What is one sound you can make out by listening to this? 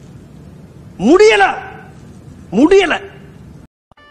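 A man exclaims loudly in a high, wavering voice.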